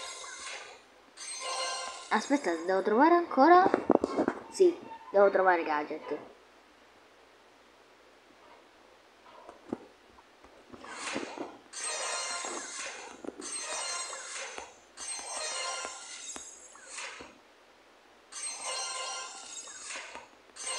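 Bright game jingles and chimes play in bursts.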